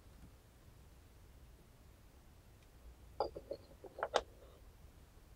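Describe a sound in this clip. A ceramic lid clinks onto a teapot.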